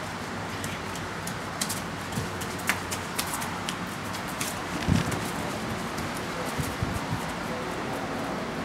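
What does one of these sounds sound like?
Puppies' claws patter and scrape on a hard floor.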